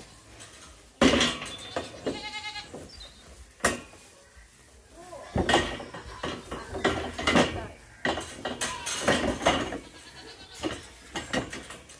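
A metal gate rattles and clanks as someone climbs over it.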